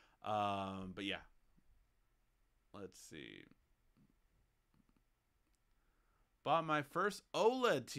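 A young man speaks casually and close to a microphone, in short bursts with pauses.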